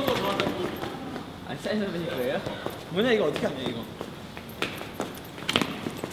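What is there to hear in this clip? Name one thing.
Young men talk and laugh together close by.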